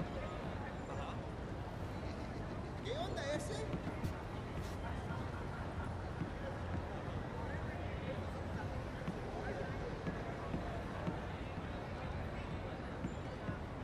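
Footsteps tread steadily on a wooden boardwalk.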